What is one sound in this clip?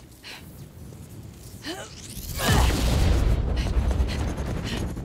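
Magical energy crackles and hums.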